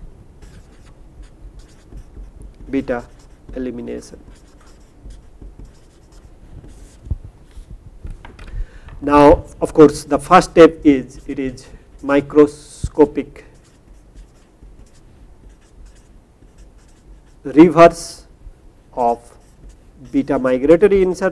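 A marker squeaks on paper.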